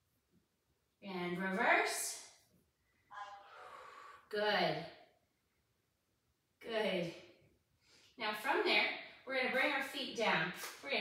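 A young woman speaks calmly, giving instructions.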